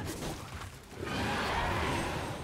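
Magic spell effects whoosh and crackle in a video game.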